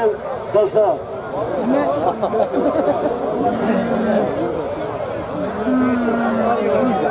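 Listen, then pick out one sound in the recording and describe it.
A large crowd of men and women chatters loudly outdoors.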